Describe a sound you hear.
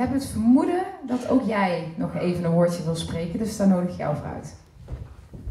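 A woman speaks through a microphone in a large hall.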